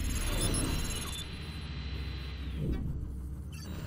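A small robot's electric motor whirs as it rolls along.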